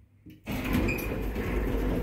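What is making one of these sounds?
An elevator button clicks as it is pressed.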